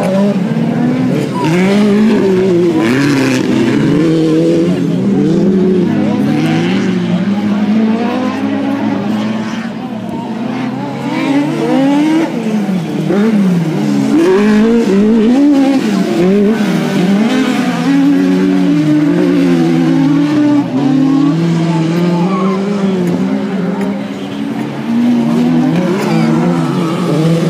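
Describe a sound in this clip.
Racing car engines roar and rev up and down nearby throughout.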